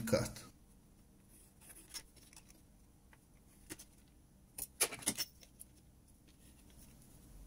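A pencil scratches on plastic.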